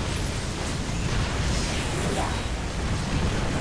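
A laser beam hums as it fires.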